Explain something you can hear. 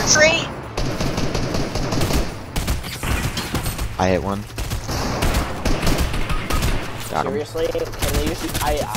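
Rapid gunshots fire in bursts close by.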